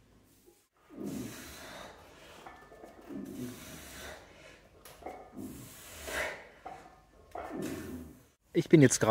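A man breathes hard while lifting a heavy weight.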